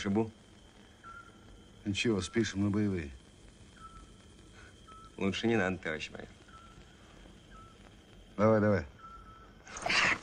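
A man speaks quietly, close by, in short phrases.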